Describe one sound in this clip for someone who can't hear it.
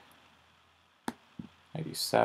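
A short wooden click sounds as a chess piece is placed.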